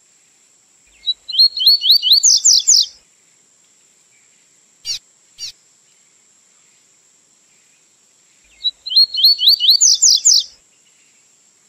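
A small songbird sings a quick, rising trill of whistled notes, twice.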